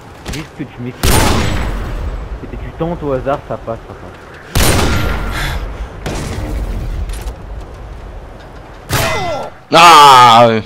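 Loud rifle shots boom and echo.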